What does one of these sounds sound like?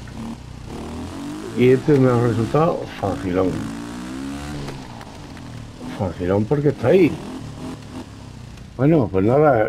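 A motorcycle engine revs up and down, rising and falling in pitch.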